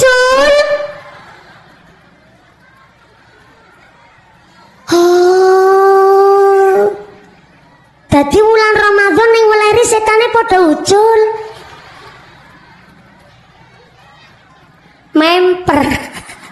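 A young woman sings loudly into a microphone through loudspeakers, in long held phrases with pauses between them.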